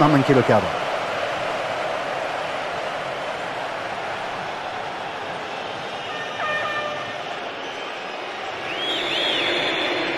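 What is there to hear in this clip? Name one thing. A stadium crowd roars in a football video game.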